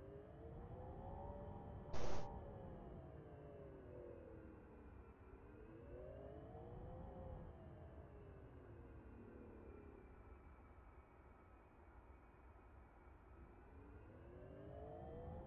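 A jet engine hums and whines, its pitch slowly rising and falling.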